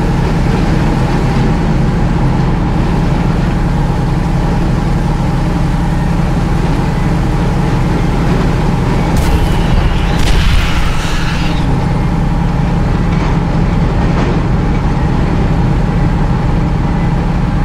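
An armoured vehicle's engine rumbles as it drives.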